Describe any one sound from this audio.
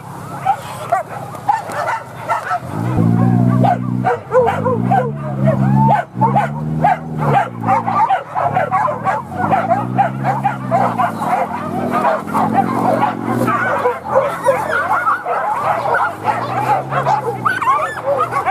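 Several dogs bark and yelp excitedly outdoors.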